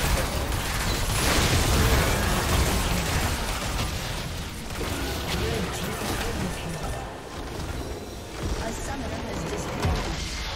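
Game spell blasts and clashing combat effects rumble loudly.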